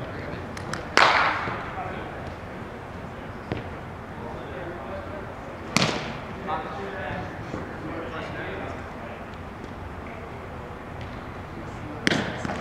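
A bat cracks against a ball with a sharp echo in a large indoor hall.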